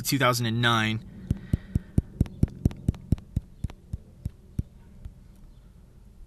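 A phone's date wheel ticks rapidly as it spins.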